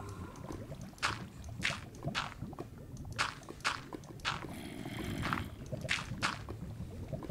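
Dirt blocks thud softly into place, one after another.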